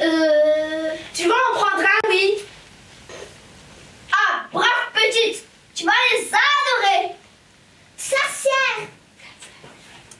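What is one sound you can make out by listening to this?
A woman speaks in a high, animated put-on voice, close by.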